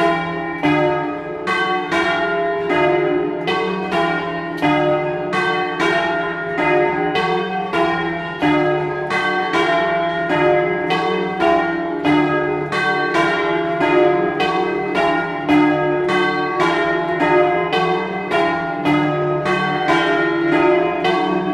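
Large church bells ring loudly close by in a fast, steady, repeating peal.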